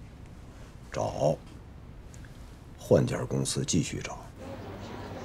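A man answers firmly with a stern voice.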